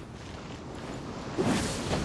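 A sword swings with a fiery whoosh.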